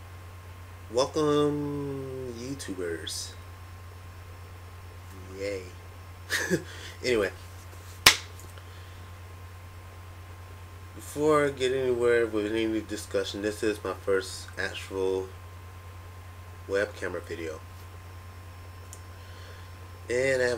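A young man speaks casually and close by, with pauses.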